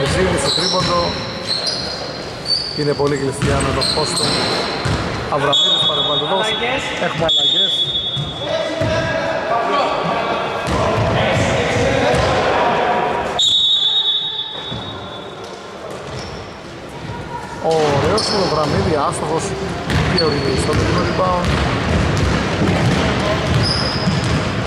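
Basketball shoes squeak sharply on a wooden court in a large echoing hall.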